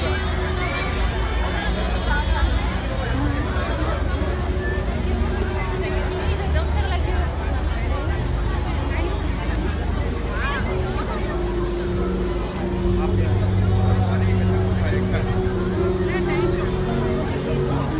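A large crowd of men and women chatter all around outdoors.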